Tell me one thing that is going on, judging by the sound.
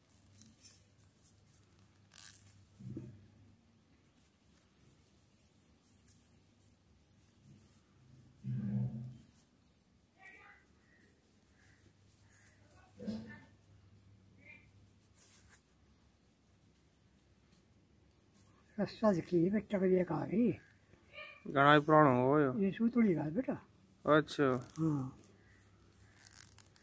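Coarse rope rustles and scrapes softly as hands twist it.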